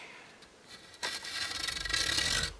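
A hand saw rasps back and forth through wood.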